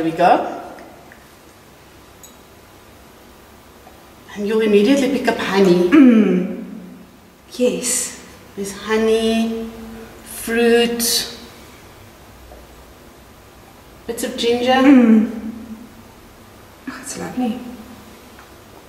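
A woman talks close by, in short bursts with pauses.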